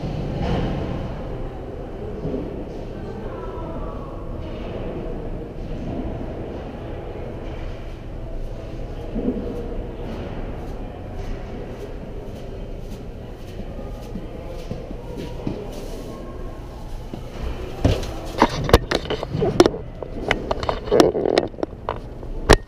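Ice skates scrape and glide steadily across ice in a large echoing rink.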